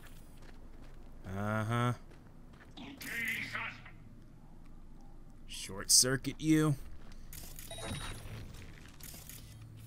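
Gunfire and explosions boom from a video game.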